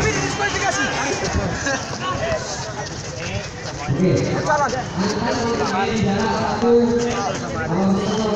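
A young man speaks with animation to a group close by.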